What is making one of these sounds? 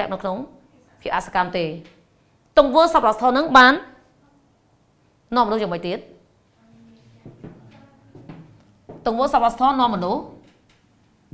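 A woman speaks clearly and with animation, pausing between phrases.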